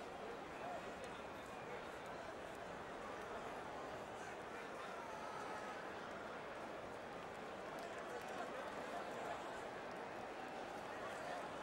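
A crowd roars steadily in a large arena.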